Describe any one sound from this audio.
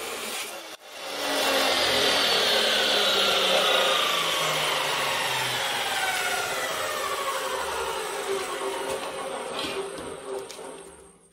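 A chop saw's motor whines and slowly winds down.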